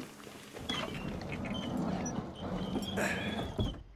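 A wooden door creaks as it is pushed open.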